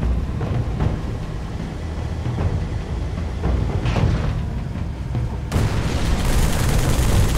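Gunfire and explosions thud in bursts.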